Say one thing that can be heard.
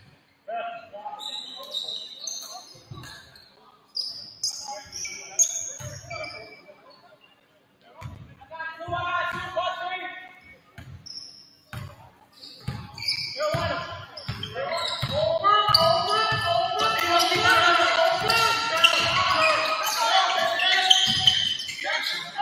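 A basketball bounces on a hard floor in an echoing gym.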